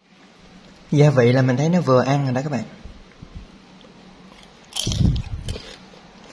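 Chopsticks set a fried roll down onto crisp salad leaves.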